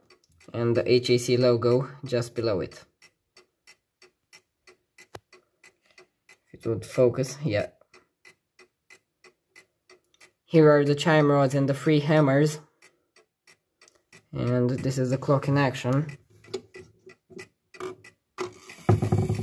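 A pendulum clock ticks steadily.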